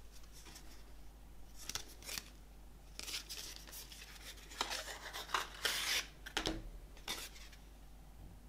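Paper crinkles and rustles as hands open a small cardboard envelope.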